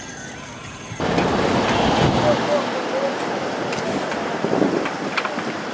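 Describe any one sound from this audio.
Shovels scrape on paving stones.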